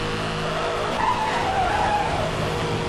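Tyres screech as a car drifts through a bend.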